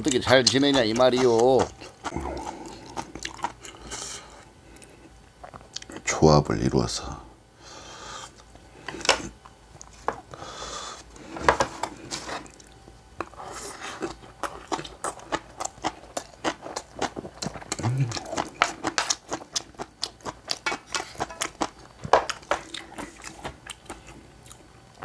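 A man chews and slurps food loudly, close to a microphone.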